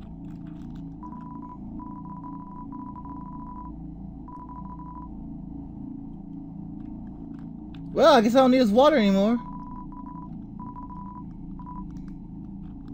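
Video game text blips beep rapidly as dialogue types out.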